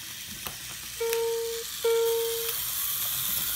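A toy train gives two short, high toots.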